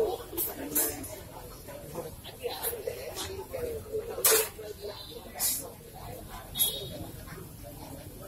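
Metal pots and crates clatter as men carry them.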